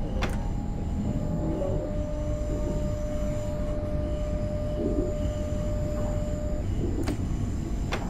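Train wheels click sharply over rail joints.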